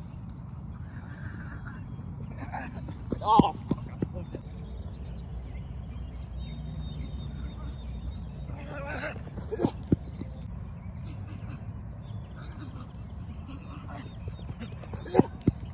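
Footsteps pound on artificial turf as a man sprints.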